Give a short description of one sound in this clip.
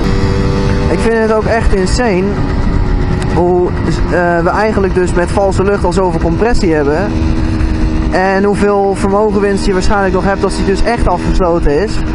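A motorcycle engine revs up and down repeatedly.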